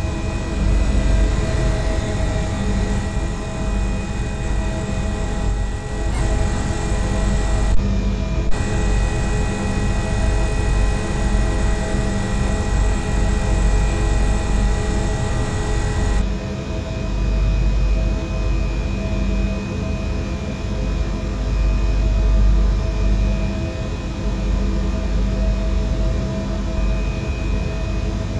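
An electric train hums steadily while standing still.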